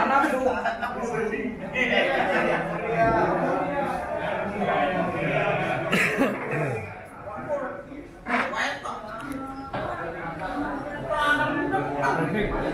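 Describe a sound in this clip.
An older man speaks into a microphone through a loudspeaker.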